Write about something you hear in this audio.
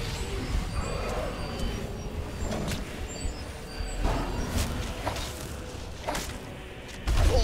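Heavy blows and crackling magic strike in a fight.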